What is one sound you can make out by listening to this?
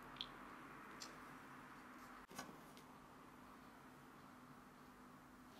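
Dry grains crunch and rustle under fingers.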